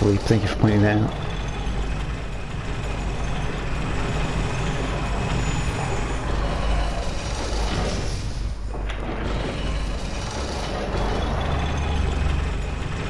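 A heavy lift rumbles and rattles as it moves.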